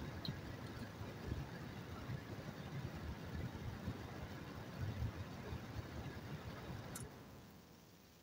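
A car engine idles while waiting in traffic.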